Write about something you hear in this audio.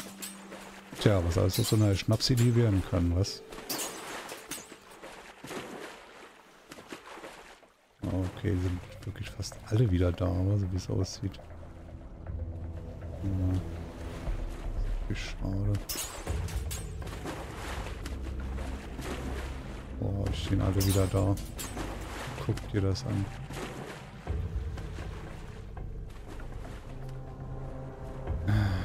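A man talks with animation, close to a microphone.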